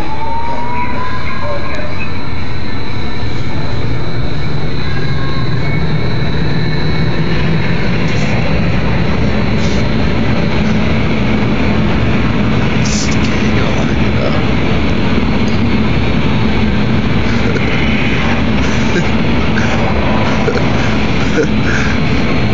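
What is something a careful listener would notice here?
Strong wind roars loudly and steadily.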